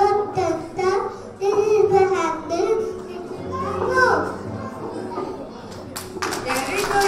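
A woman speaks with animation through a microphone on a loudspeaker.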